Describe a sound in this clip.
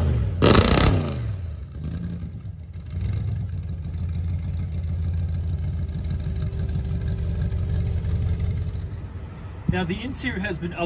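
A pickup truck engine idles with a low, steady rumble.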